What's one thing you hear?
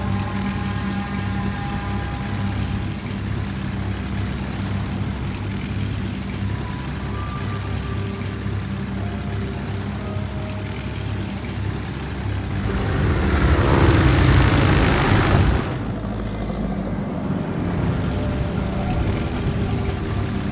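Propeller plane engines drone steadily in a group.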